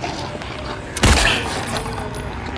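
A gunshot fires with a loud, echoing bang.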